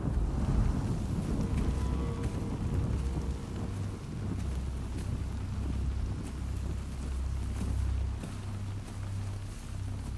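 A torch flame flutters and crackles.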